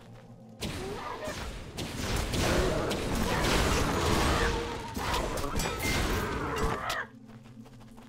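Fiery magic bolts whoosh and burst loudly.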